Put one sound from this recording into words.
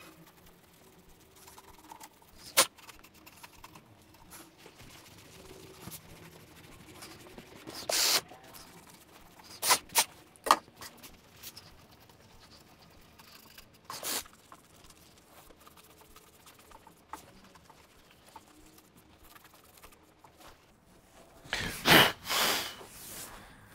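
A hand tool taps and scrapes on a wooden board.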